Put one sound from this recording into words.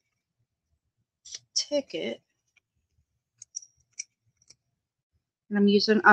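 Paper tickets rustle and tear apart.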